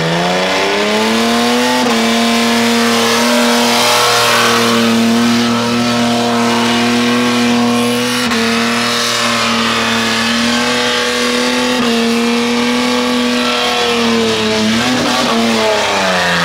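Tyres screech and squeal as they spin on pavement.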